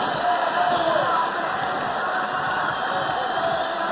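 A crowd cheers.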